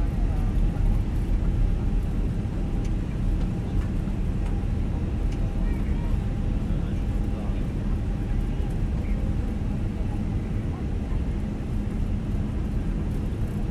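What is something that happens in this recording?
Jet engines roar steadily as an airliner speeds along a runway.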